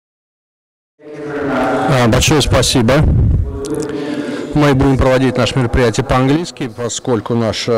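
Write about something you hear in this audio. A man speaks to an audience through a microphone in a large hall.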